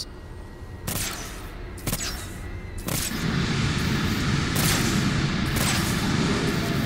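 An energy gun fires in sharp zaps.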